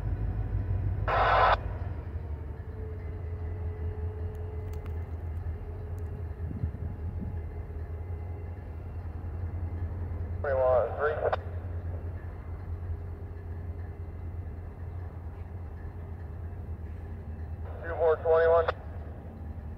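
A train horn blows in short blasts.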